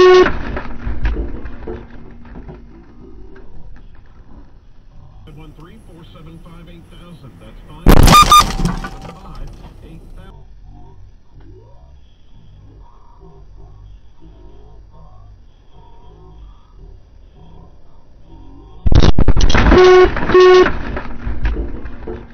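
A car crashes head-on into another car with a loud crunch.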